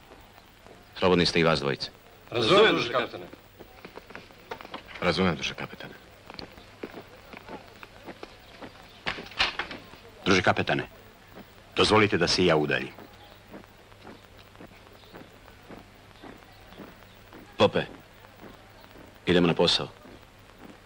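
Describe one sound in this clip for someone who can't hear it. A middle-aged man speaks firmly in short phrases, nearby.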